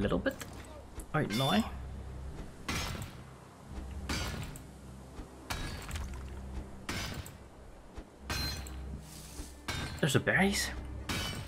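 A pickaxe strikes rock with sharp, repeated clanks.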